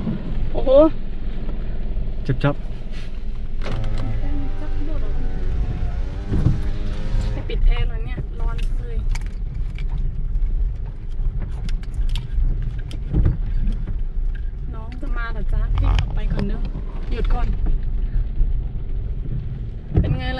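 Raindrops tap on a car windshield.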